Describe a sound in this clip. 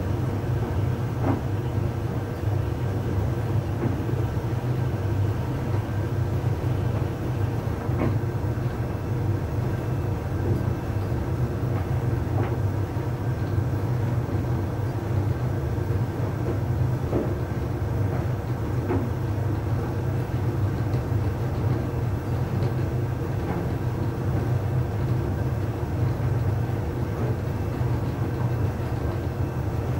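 A tumble dryer hums and rumbles steadily as its drum turns.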